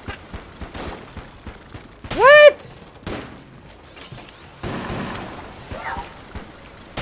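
Small gunshots pop in quick bursts.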